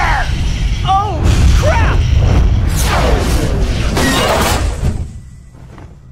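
A fiery explosion roars loudly.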